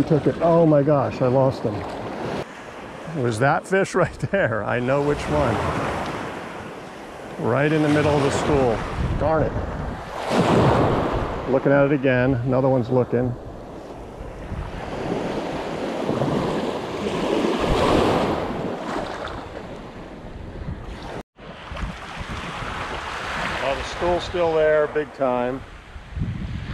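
Small waves lap gently against the shore.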